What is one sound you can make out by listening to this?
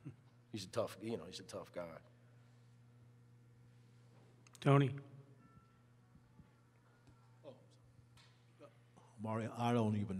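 A middle-aged man speaks calmly into a microphone, in short bursts.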